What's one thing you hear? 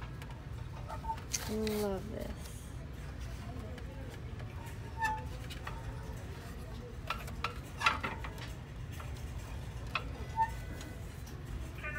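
A hand handles a small metal toy truck, making light knocks and taps.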